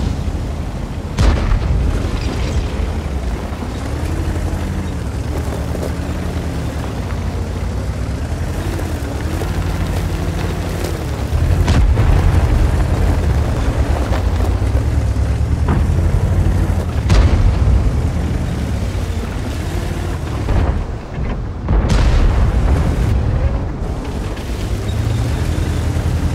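A tank engine rumbles and roars steadily.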